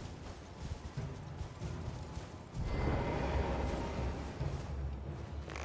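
Horse hooves gallop over grass.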